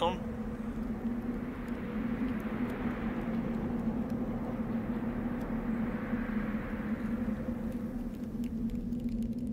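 Wind blows.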